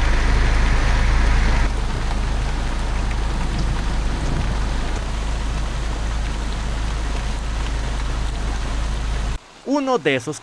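Heavy rain pours down steadily outdoors.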